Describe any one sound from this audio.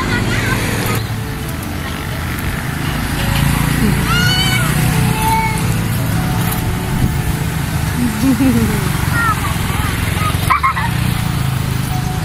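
Motorbikes rumble past on the road.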